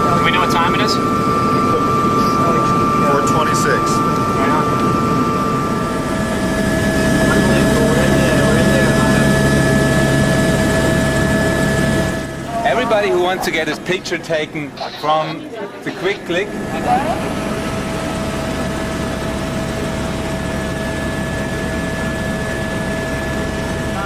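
A helicopter engine drones loudly and steadily.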